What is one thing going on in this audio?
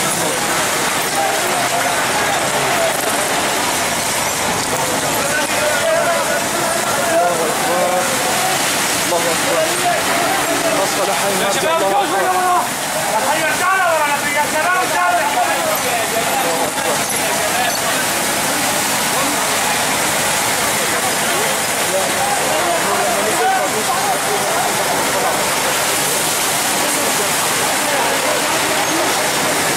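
A fire hose sprays water in a hissing jet.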